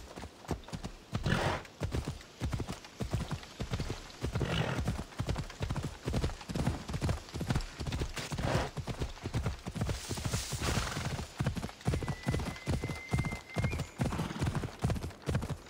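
Hooves thud in a quick, steady gallop.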